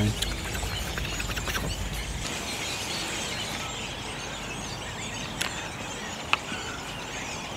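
A redwing sings a quiet warbling sub-song.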